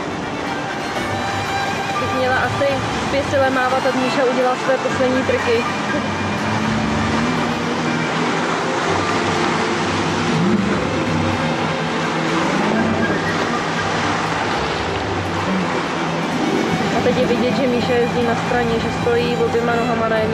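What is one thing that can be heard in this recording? A jet ski engine roars and revs as it circles on water.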